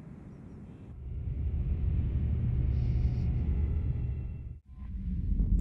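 A starship's engines rumble deeply as it glides past.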